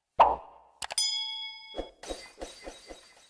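A small bell rings brightly.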